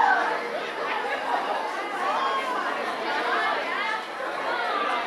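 Young women talk and laugh excitedly nearby.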